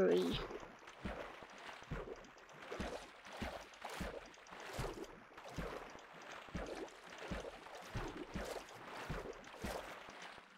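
Short soft clicks and pops of a video game repeat at a steady pace.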